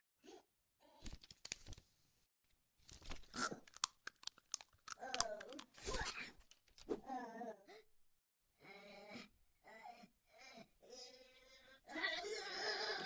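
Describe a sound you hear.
A man speaks in a cartoonish voice with animation.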